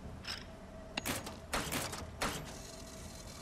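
A metal switch clicks and clunks.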